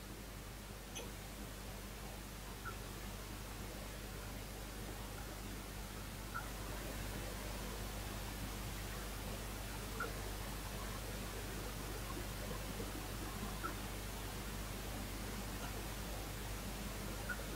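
Small objects click softly between a man's fingers.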